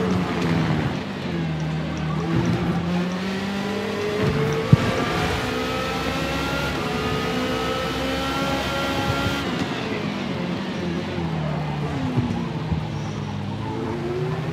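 A racing car engine whines loudly, rising in pitch as it speeds up and dropping sharply as it slows.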